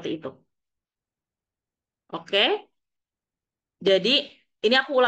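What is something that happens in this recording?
A young woman speaks calmly in short phrases over an online call.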